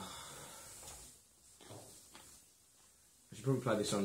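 Playing cards rustle and slide as hands handle them on a table.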